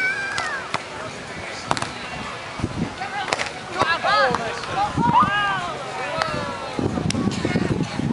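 A volleyball is struck with sharp slaps of the hands.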